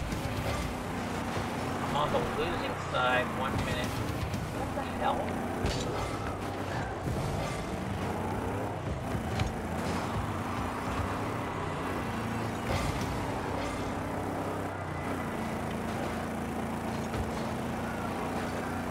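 Car engines hum steadily in a video game.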